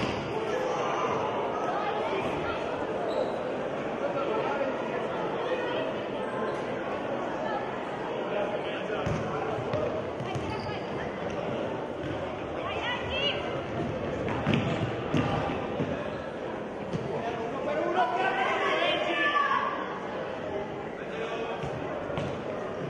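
Children shout and call out in an echoing indoor hall.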